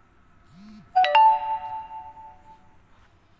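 A phone notification chime sounds once.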